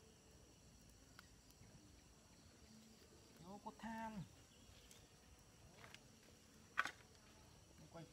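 A machete chops into wood with sharp knocks.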